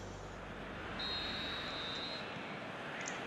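A referee's whistle blows once, sharply.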